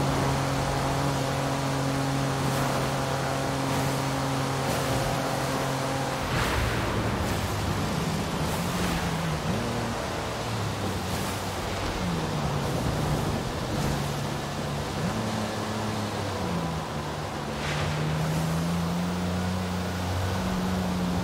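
A sports car engine roars at high speed, then drops in pitch as the car slows and changes gear.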